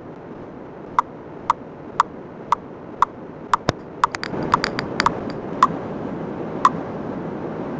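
A game countdown timer beeps quickly, each short beep sharp and high.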